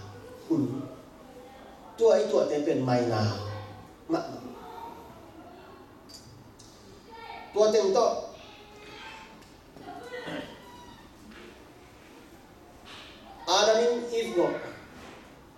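A man speaks calmly into a microphone in an echoing hall, pausing between phrases.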